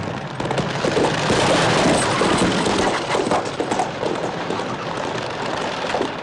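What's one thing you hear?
A horse-drawn carriage rattles past over a rough road.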